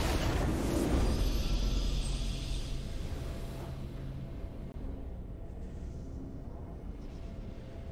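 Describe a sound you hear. A triumphant game fanfare plays and slowly fades.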